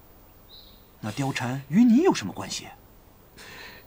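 A man asks something in a tense voice, close by.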